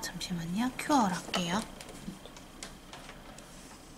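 Fingers handle a plastic piece with light clicks and taps.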